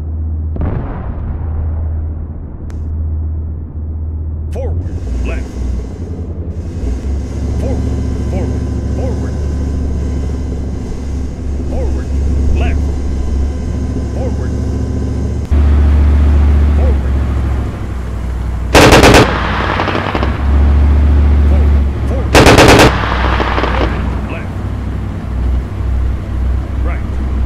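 A heavy tank engine rumbles steadily.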